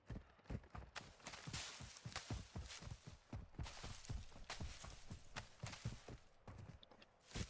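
A character slides through grass with a rustling rush.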